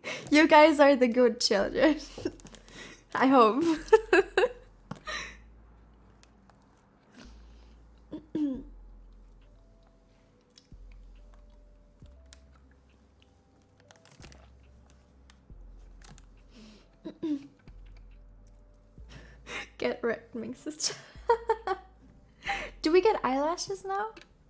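A young woman speaks and laughs close to a microphone.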